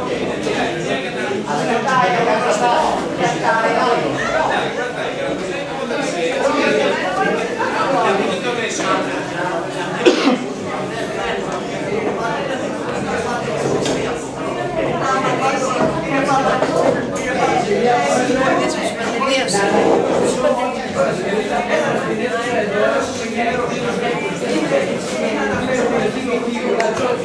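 Several adults talk over one another in a large, echoing room.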